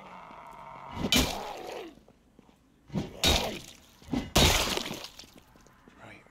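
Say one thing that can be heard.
A bat strikes a body with heavy, dull thuds.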